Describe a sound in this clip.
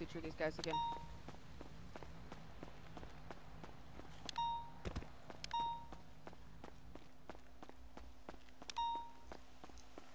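A short electronic alert chime sounds several times.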